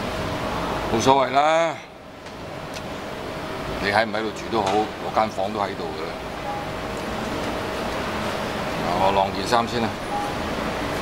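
An elderly man speaks calmly and quietly.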